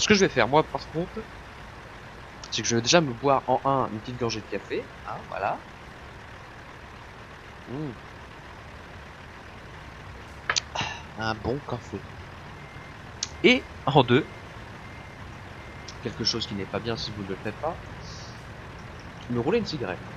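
A truck engine idles steadily.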